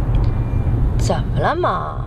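A woman speaks briefly and quietly.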